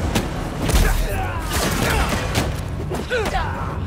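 Bodies crash onto a metal grate.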